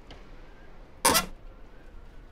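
A heavy iron oven door clanks open.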